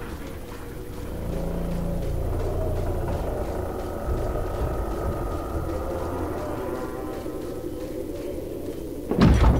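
Footsteps crunch on dirt ground.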